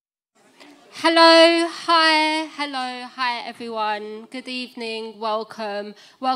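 A young woman sings through a microphone.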